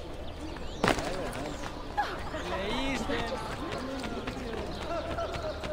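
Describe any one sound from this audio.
Quick footsteps patter on cobblestones.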